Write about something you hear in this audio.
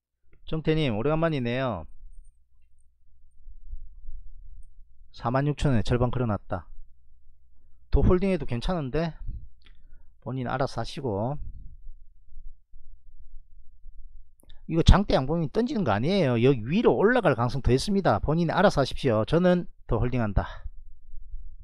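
A man talks calmly into a microphone, in short bursts with pauses.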